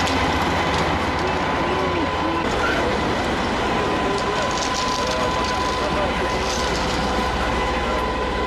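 A fire engine's motor rumbles steadily nearby.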